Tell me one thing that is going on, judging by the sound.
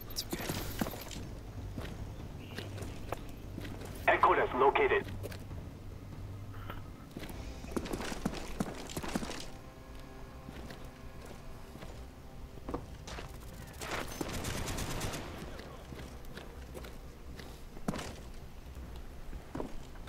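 Footsteps tread steadily across hard ground.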